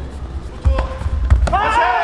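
A kick thuds against a padded body protector.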